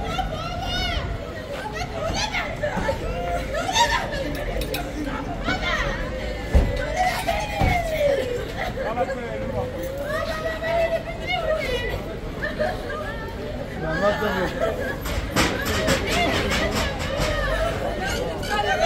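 Men talk and call out to one another in a crowd outdoors.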